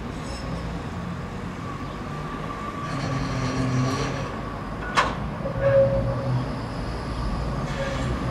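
A tram approaches along the tracks, its rumble growing louder.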